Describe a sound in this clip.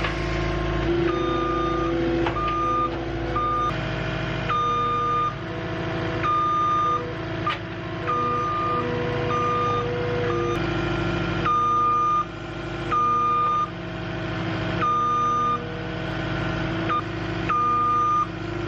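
A tracked loader's warning alarm beeps repeatedly.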